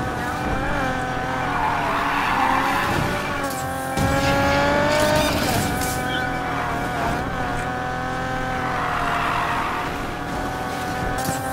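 Tyres screech as a car drifts around bends.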